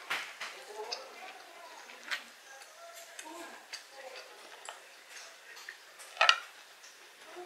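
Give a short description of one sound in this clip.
Metal forks clink and scrape against food and a board.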